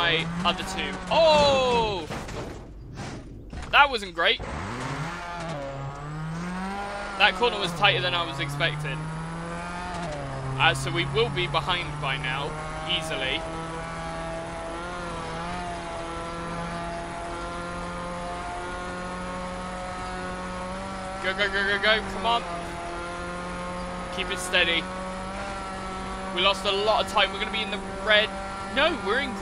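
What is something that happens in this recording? A rally car engine revs and roars at high speed.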